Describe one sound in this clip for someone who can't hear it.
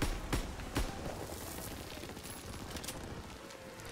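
A rifle bolt clicks as a gun is reloaded.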